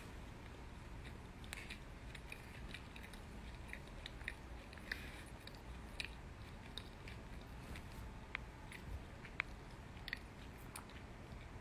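A young woman chews food softly, close by.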